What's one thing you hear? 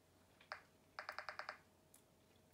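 Short electronic menu beeps sound in quick succession.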